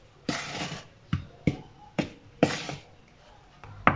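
A spoon scrapes and stirs flour in a plastic bowl.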